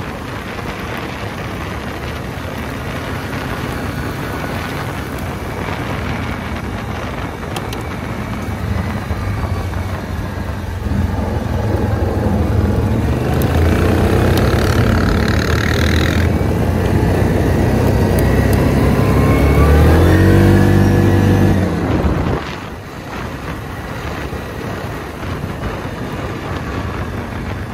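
An all-terrain vehicle engine rumbles steadily and revs up and down.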